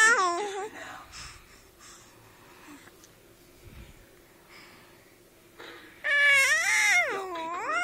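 A toddler squeals and babbles in a high voice close by.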